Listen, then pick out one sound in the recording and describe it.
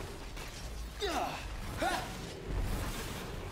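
Magic energy crackles and whooshes.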